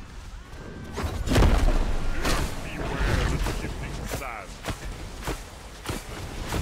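Sharp blows and magical blasts crash in a game fight.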